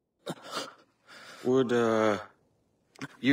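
A man groans and speaks in pain, close by.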